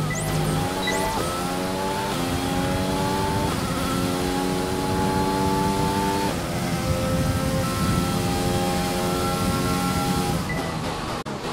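A racing car engine screams high and climbs in pitch through quick gear changes.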